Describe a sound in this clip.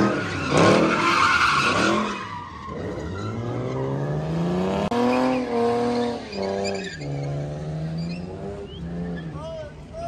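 A car engine revs hard.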